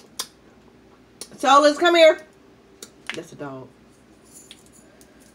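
A young woman chews and smacks her lips loudly.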